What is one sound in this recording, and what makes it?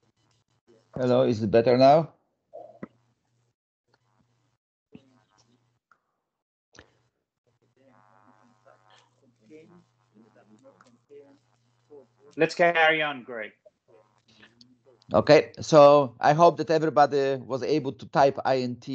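A man speaks through an online call.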